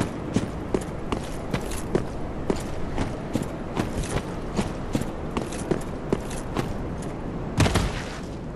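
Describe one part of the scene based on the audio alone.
Footsteps crunch quickly over stony ground.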